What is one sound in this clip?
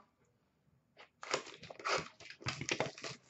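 Cardboard boxes rustle and scrape as hands handle them.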